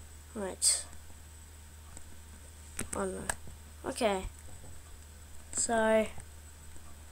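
A young boy speaks in short bursts close to a microphone.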